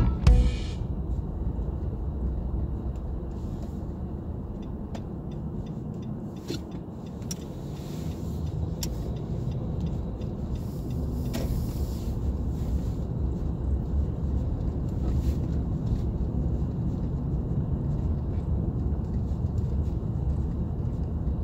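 Tyres crunch and hiss over packed snow.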